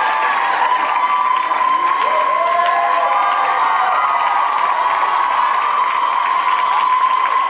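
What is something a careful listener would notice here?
A crowd of young women screams and cheers excitedly in a large hall.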